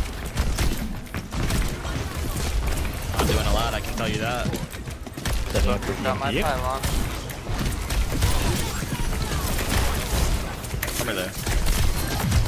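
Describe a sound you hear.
Game gunfire and explosions crackle and boom.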